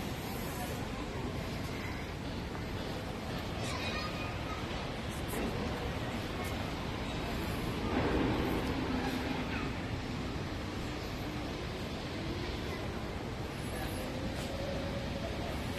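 Shoes shuffle and scrape softly on a wooden deck.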